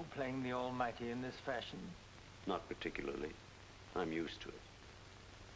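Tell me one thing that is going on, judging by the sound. A man speaks tensely at close range.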